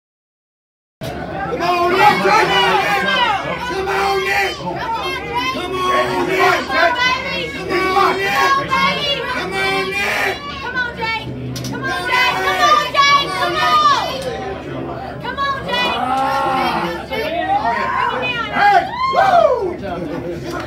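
A man shouts encouragement close by.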